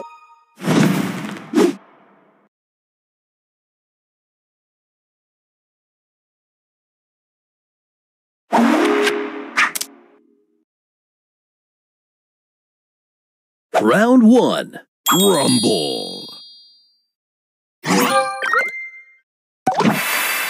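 Short whooshing game sound effects and chimes play in bursts.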